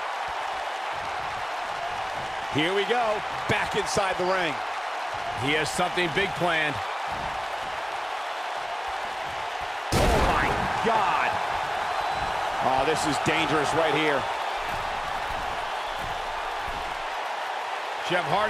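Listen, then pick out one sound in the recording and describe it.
An arena crowd roars and cheers.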